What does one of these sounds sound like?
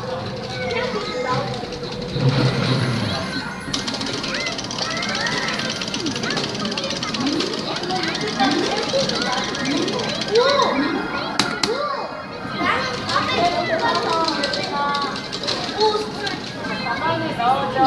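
Hands tap and press plastic game buttons.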